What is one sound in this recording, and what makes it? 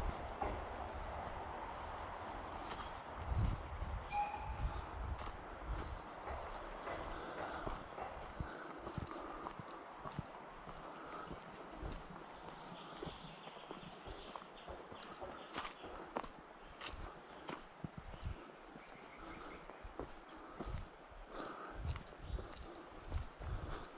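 Footsteps crunch on dry leaves and soil.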